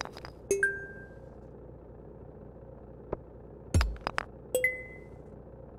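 A soft chime rings twice.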